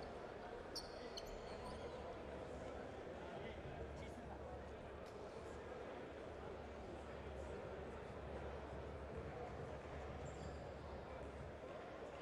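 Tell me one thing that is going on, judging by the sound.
A crowd murmurs steadily in a large echoing hall.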